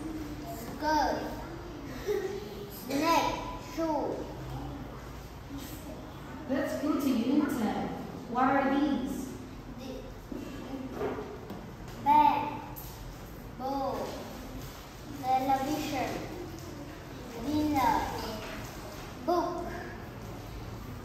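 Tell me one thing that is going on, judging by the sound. A young boy says single words aloud, one at a time, close by.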